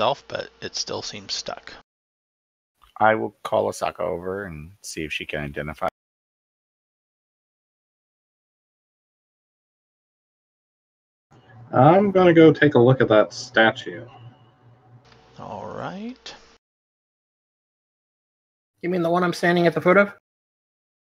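Men talk calmly over an online call, heard through headset microphones.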